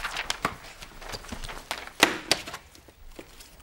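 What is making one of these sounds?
A bed rustles and thumps.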